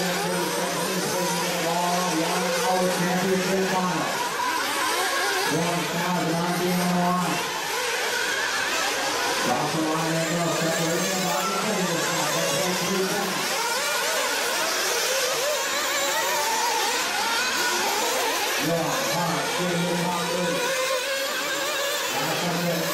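Small radio-controlled cars whine shrilly as they race around.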